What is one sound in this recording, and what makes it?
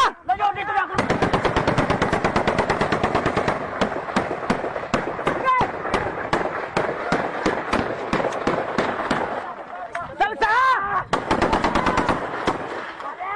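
Rifles fire in rapid bursts nearby.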